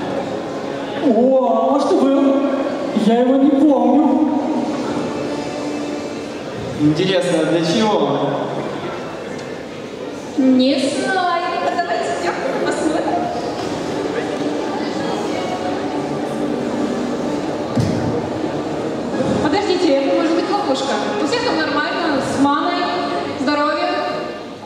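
A young woman speaks dramatically through loudspeakers in a large echoing hall.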